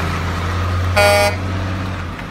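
A truck's air horn sounds a short blast.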